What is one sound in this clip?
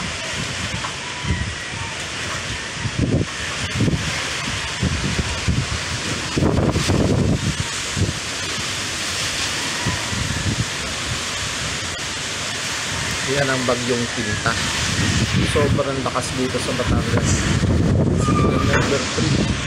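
Trees and banana leaves thrash in the wind.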